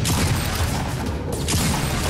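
A shotgun fires loud, sharp blasts.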